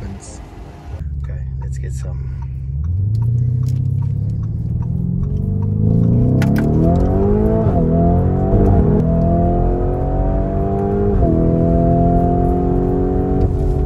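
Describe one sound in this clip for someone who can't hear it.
A twin-turbo V8 SUV accelerates through the gears.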